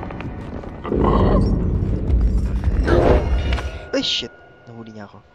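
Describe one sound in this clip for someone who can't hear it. A heavy body lunges and thuds onto a wooden floor.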